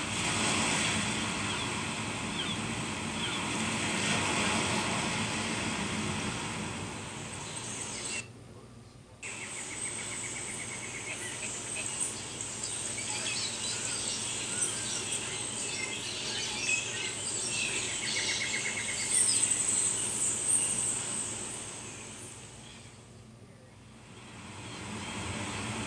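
Waves wash onto a beach, heard through a television speaker.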